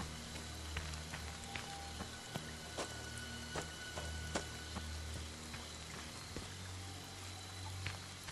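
Footsteps crunch through brush and dry leaves.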